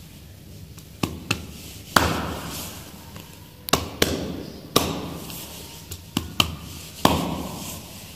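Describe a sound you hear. Hands slap sharply against a hard floor.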